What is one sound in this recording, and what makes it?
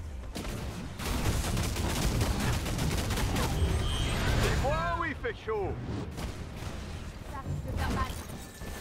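Explosions boom and rumble in a video game.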